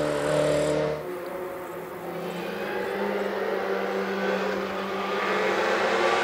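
A rally car engine revs rising as the car approaches from a distance.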